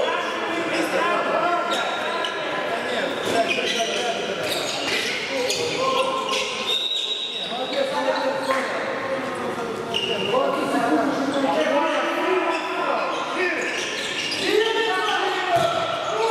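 A handball bounces on a court floor in a large echoing hall.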